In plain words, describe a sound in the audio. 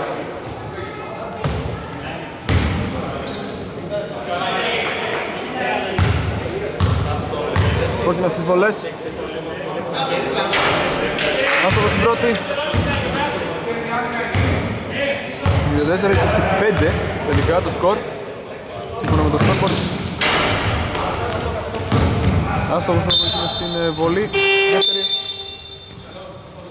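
Men call out to each other across the hall.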